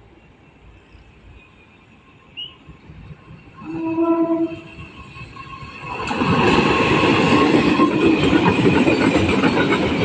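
A diesel locomotive rumbles closer.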